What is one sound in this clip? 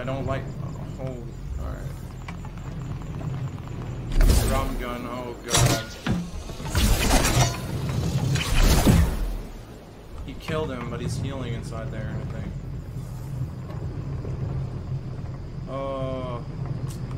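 A young man talks animatedly and close into a microphone.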